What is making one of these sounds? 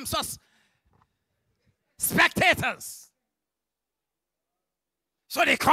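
A man preaches with animation into a microphone over loudspeakers, in short bursts with pauses.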